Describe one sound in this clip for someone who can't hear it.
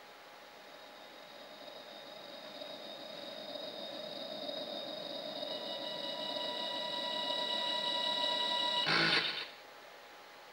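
A computer plays a steady electronic drone that slowly swells louder, then cuts off with a short crash.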